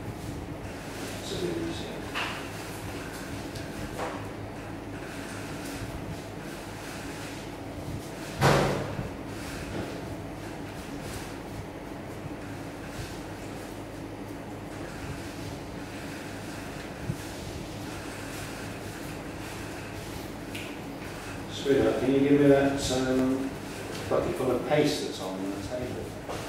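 Twine rustles softly as hands twist and pull it.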